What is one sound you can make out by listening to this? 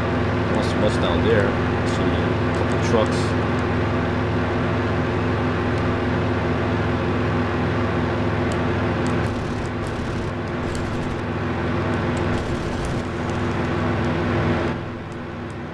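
A propeller aircraft engine drones steadily and loudly.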